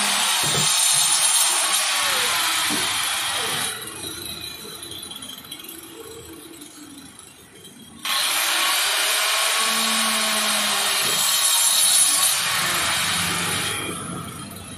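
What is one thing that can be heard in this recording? An electric circular saw whines as it cuts through a plastic drum.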